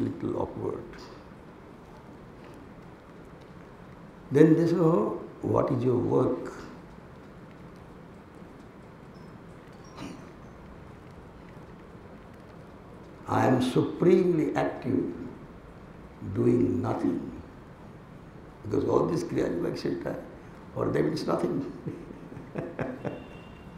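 An elderly man speaks calmly into a microphone, with pauses, in a room with a slight echo.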